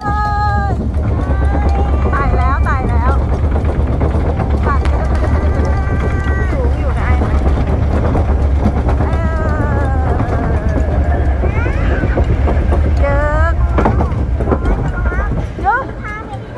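A roller coaster car rumbles and clatters along its track.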